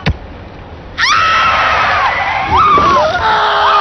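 A man shouts in panic.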